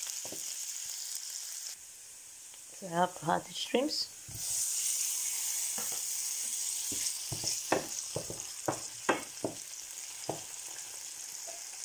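A wooden spoon scrapes and knocks against a frying pan.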